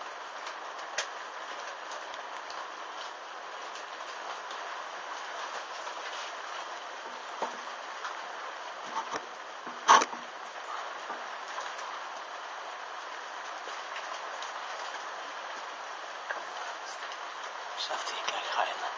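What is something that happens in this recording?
Molten drops pop and sputter as they fall.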